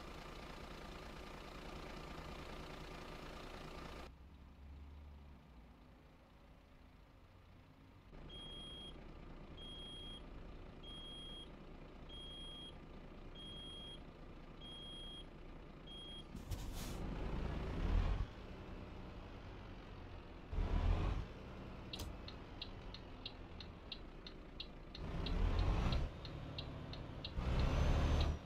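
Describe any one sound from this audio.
A truck engine rumbles, now and then revving louder.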